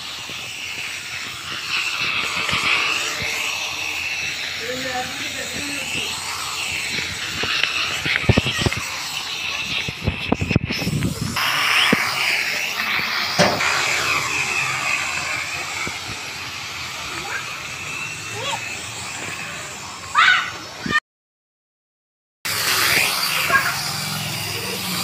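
A small drone's propellers whir with a high, wavering buzz close by.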